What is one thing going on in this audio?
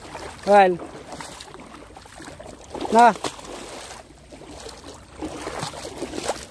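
Shallow water ripples and gurgles steadily over stones outdoors.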